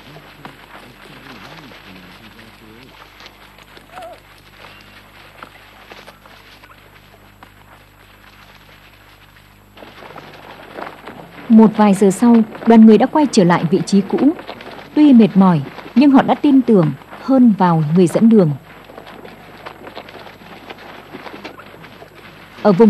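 Camels' feet crunch slowly on stony ground.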